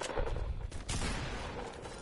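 Footsteps pad across grass.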